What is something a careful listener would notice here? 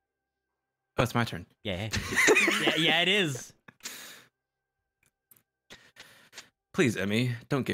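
A young man reads aloud with animation through a microphone.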